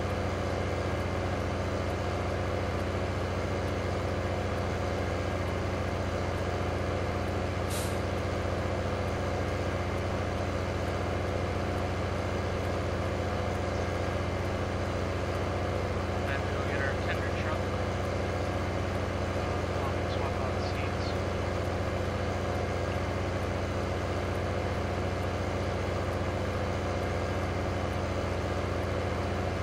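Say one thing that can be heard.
A tractor engine drones steadily with a deep hum.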